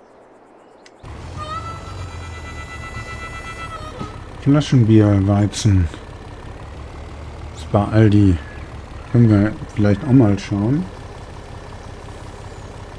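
A truck engine idles and rumbles.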